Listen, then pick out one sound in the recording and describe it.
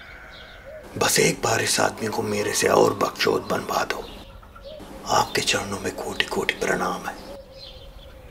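A man speaks loudly and with feeling, close by.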